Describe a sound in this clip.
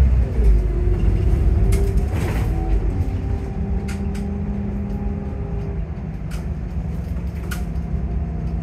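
A bus engine hums and drones steadily while driving.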